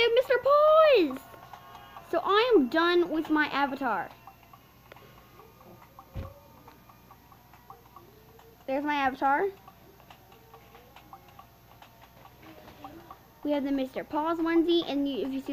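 A young girl talks with animation close to the microphone, in short bursts.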